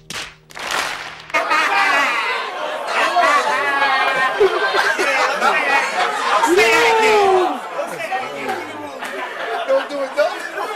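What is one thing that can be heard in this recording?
A crowd cheers and shouts loudly.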